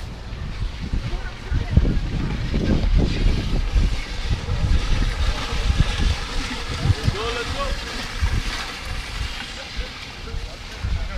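Weighted sleds scrape and rumble across asphalt outdoors.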